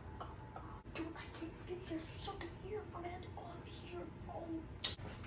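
A young boy talks quietly nearby.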